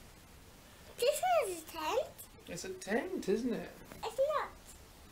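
A small child babbles and squeals playfully close by.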